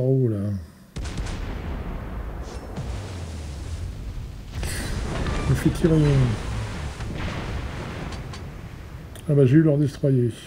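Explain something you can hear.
Heavy naval guns boom and rumble.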